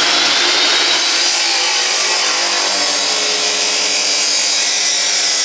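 An angle grinder cuts into metal with a harsh, hissing screech.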